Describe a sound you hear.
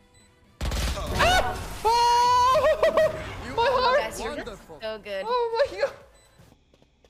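A young man shouts excitedly into a microphone.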